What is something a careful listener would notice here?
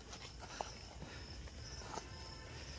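Footsteps crunch on stony ground outdoors.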